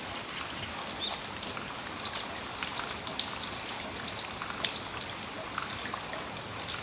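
Light rain patters and drips steadily outdoors.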